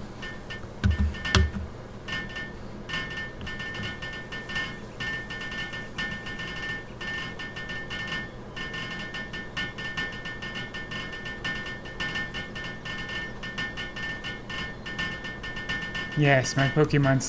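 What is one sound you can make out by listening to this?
Video game building effects chime rapidly and repeatedly.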